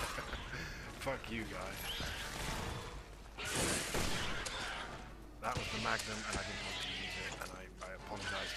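A monster growls and snarls.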